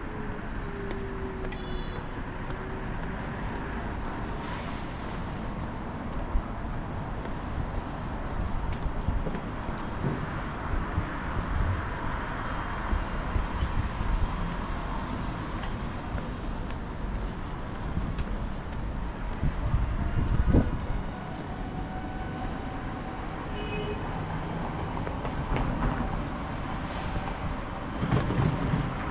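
Light city traffic hums in the distance.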